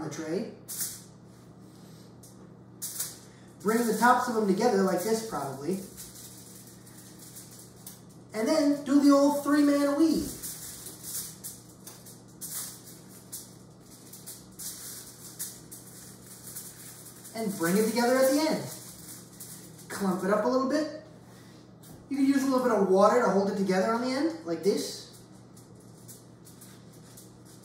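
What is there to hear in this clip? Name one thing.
Pastry rustles and crackles on a metal tray.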